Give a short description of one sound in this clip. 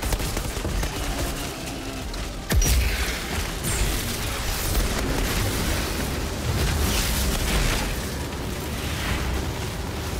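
Gunfire and explosions crackle and boom in a game.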